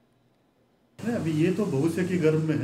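A middle-aged man speaks into microphones at close range.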